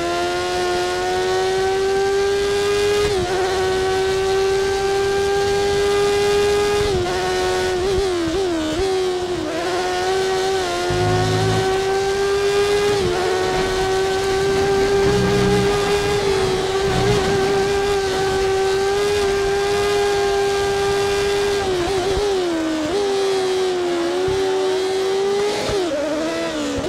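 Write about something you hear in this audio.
A racing car engine whines at high pitch, dipping briefly as gears shift.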